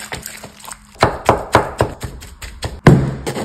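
A knife chops through chicken on a wooden board.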